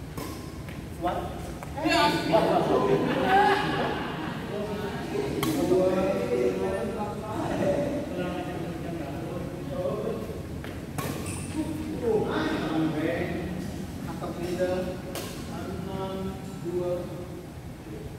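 Men talk and call out across a large echoing hall.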